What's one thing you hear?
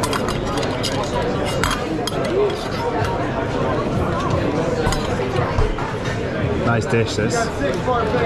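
A metal spoon clinks against a small pan.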